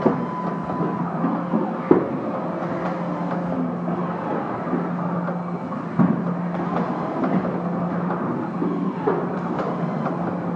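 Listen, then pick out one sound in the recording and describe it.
Machine parts clack and clunk now and then.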